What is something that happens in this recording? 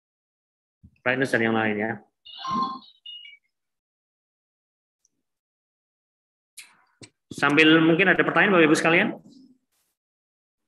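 A young man speaks calmly through an online call, in short bursts.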